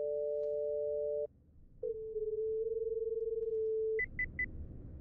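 An electronic tone hums steadily and shifts in pitch.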